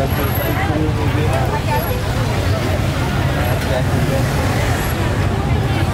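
Motorbike engines hum close by.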